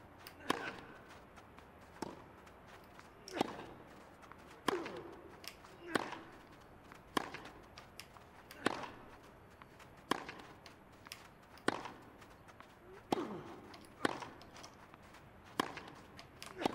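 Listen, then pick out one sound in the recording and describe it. Tennis balls are struck sharply back and forth in a rally.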